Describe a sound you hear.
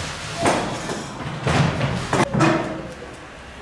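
A chair scrapes and knocks on a tiled floor.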